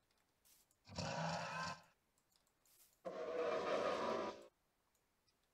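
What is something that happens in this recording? A skeleton horse in a video game cries out.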